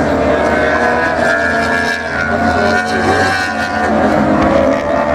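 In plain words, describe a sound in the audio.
Motorcycle engines whine at high revs as several bikes race past at a distance.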